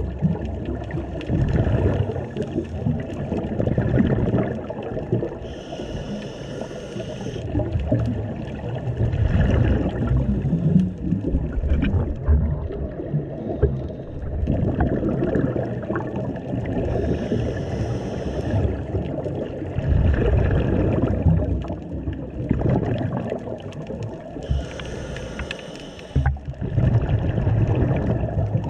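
Water rumbles and churns in a low, muffled roar underwater.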